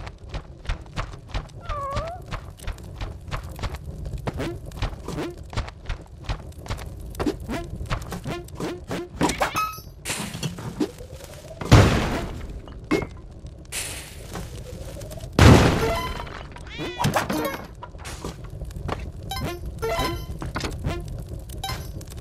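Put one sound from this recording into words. Quick electronic game sounds click and blip throughout.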